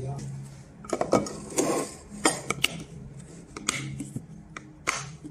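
A plastic lid clicks as it snaps shut on a food container.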